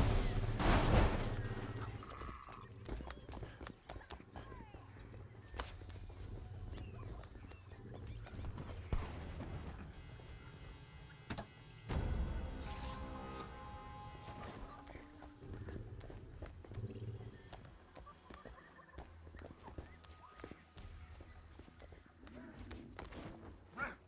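Footsteps run over stone and grass.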